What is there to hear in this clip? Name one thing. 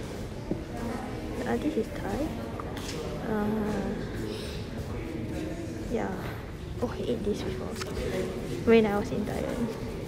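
Paper cards rustle as a hand flips them.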